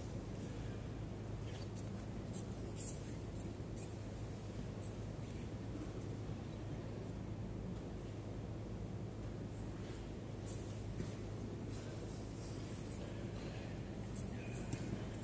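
Bodies shift and thump softly on padded mats in a large echoing hall.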